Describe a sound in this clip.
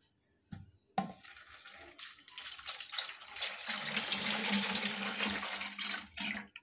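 Oil pours in a steady stream into a plastic container.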